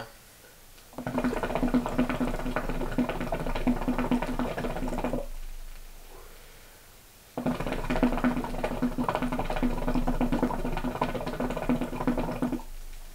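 A water pipe bubbles and gurgles loudly in bursts.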